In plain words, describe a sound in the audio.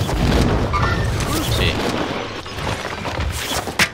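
Wind rushes loudly during a parachute descent.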